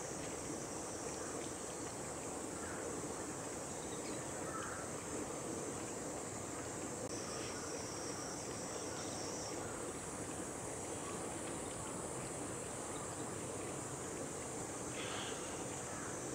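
A small bird chirps softly nearby.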